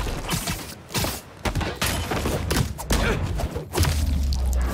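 Heavy blows thud and crash in quick succession.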